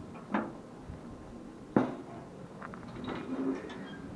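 A heavy metal firebox door clanks open.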